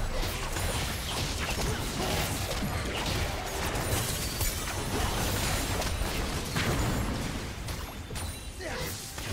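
Game spell effects crackle and burst in a rapid fight.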